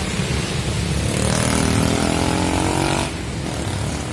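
A motorbike engine revs and passes close by on a wet road.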